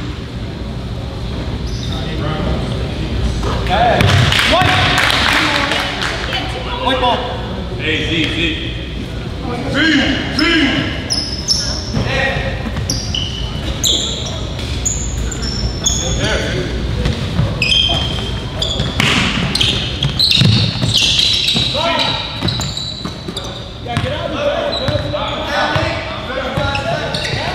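Spectators chatter in an echoing gym.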